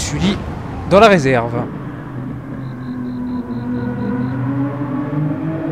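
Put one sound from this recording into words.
A racing car engine hums steadily, its pitch shifting slightly as it speeds along.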